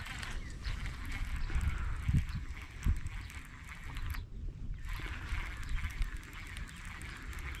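A fishing reel ticks softly as a line is reeled in.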